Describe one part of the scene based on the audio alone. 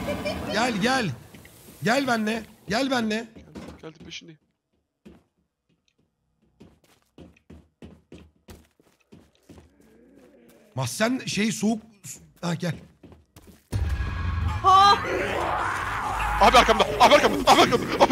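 Young men talk and exclaim with animation over headset microphones.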